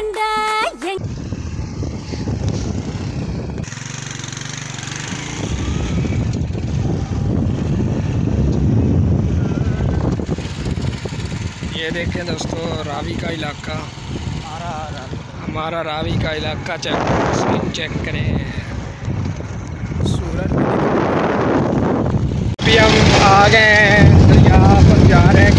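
A motorcycle engine rumbles while riding.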